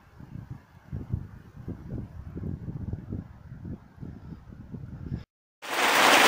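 Wind gusts through trees outdoors.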